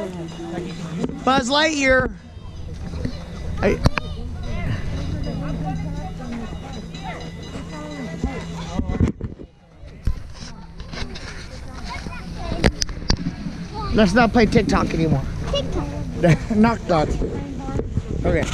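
Young children chatter and shout outdoors.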